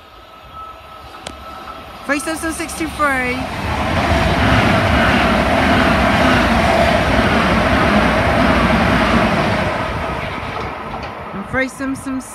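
An electric multiple-unit train rushes through a station at speed.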